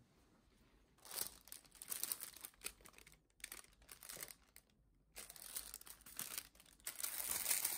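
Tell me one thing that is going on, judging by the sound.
A plastic sandwich wrapper crinkles in someone's hands.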